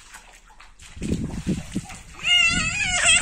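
Water splashes as a boy kicks through a shallow pool.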